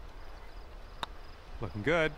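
A golf putter taps a ball.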